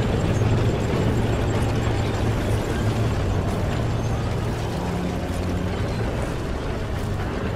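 Wind blows steadily through tall grass outdoors.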